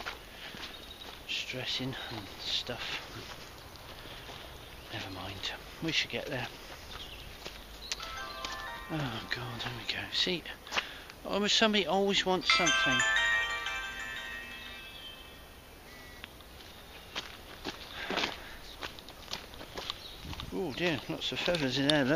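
A middle-aged man talks calmly and close by, outdoors.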